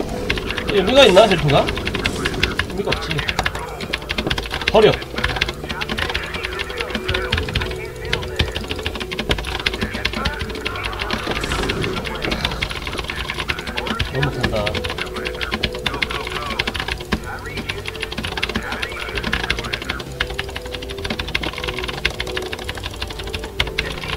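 Video game sound effects click and beep throughout.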